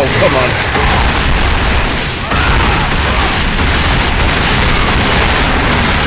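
Rocks crash and crumble in a game explosion.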